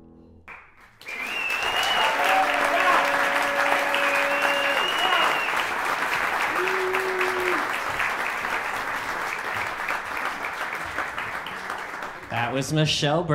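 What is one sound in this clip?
An audience applauds loudly in an echoing room.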